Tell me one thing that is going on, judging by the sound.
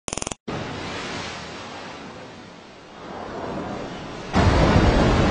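Water rushes and splashes as a whale leaps from the sea.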